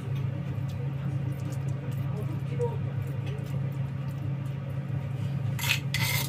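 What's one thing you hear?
A metal spoon scrapes and taps softly against a plate.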